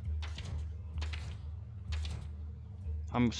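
A card book page flips with a soft swish, again and again.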